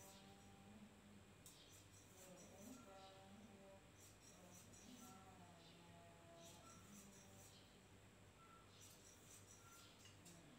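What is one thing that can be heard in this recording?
Cloth rustles softly as it is handled close by.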